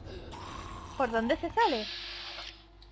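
A creature snarls with a harsh, rising and falling growl.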